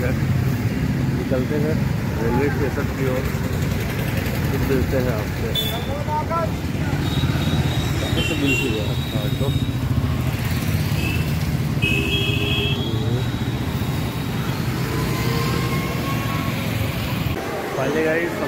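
Motor traffic rumbles steadily along a wet road.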